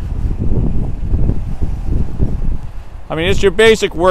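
Wind rumbles in gusts outdoors.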